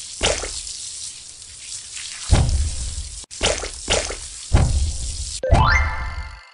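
Water sprays in a rushing hiss.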